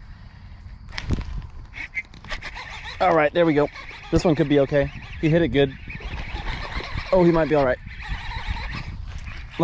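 A fishing reel clicks and rattles as it is handled.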